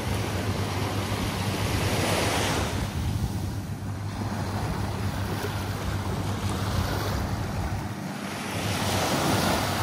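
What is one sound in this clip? Small waves wash up and break gently on the shore.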